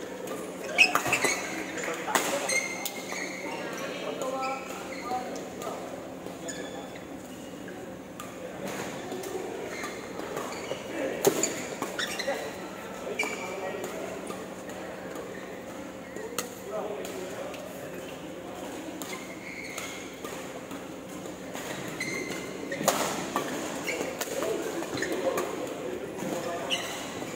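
Rackets smack shuttlecocks in sharp, quick hits.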